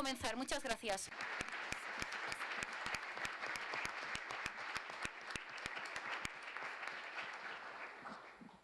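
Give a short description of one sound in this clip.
A large hall full of people breaks into applause.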